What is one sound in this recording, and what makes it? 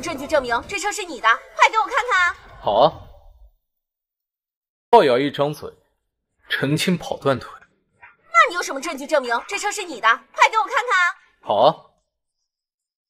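A young woman speaks close by, questioning sharply.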